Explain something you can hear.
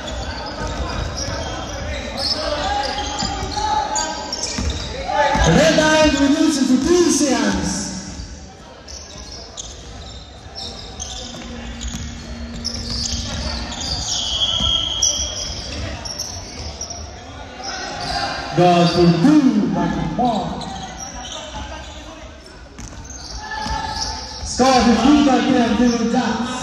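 Young players and spectators shout and call out loudly.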